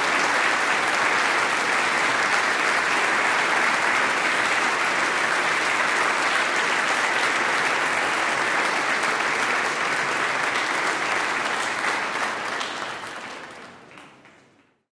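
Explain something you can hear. An audience applauds loudly in a large hall, then the applause fades away.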